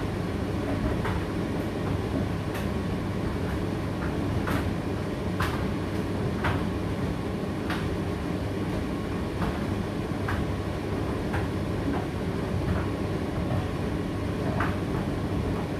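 Items knock lightly inside a turning tumble dryer drum.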